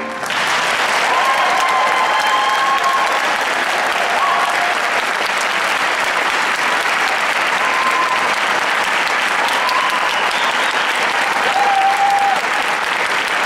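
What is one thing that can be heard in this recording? An audience claps loudly in an echoing hall.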